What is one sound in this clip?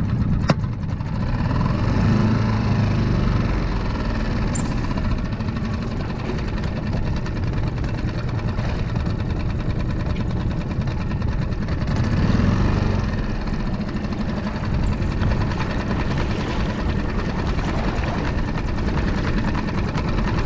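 Wind blows steadily across open water outdoors.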